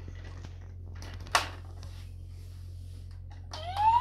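Plastic toy parts click and knock.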